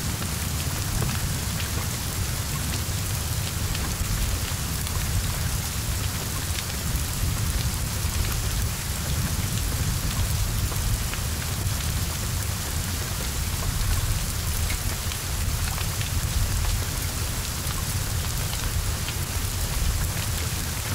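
Heavy rain pours steadily onto wet ground.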